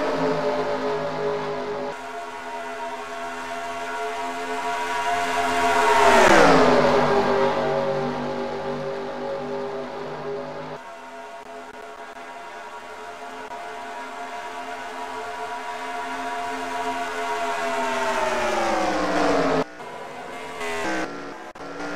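Several race car engines roar steadily at high speed.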